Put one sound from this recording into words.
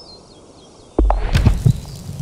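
A golf club strikes a ball with a sharp, loud thwack.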